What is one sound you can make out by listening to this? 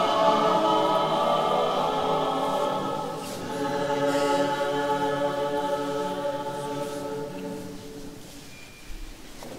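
A group of people sings together in a large, echoing hall.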